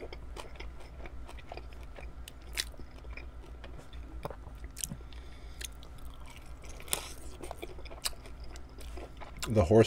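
A man chews chicken wings close to a microphone with wet smacking sounds.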